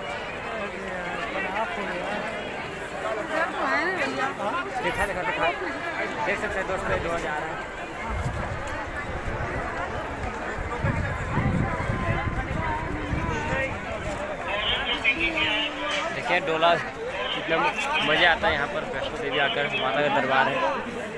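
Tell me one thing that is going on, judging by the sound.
A crowd of people chatters nearby.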